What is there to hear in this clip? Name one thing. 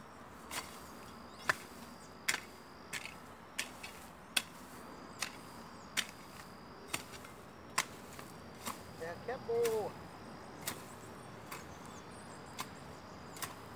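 A hoe scrapes and strikes dry soil in a steady rhythm.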